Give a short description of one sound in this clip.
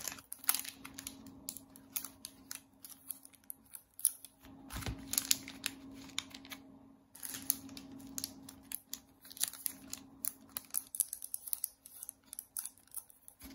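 Plastic banknote wrappers crinkle and rustle in a hand.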